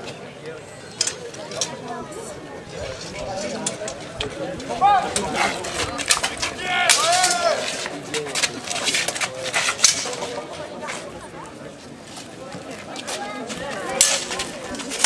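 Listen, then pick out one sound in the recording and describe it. Steel longswords clash and ring in a sword fight.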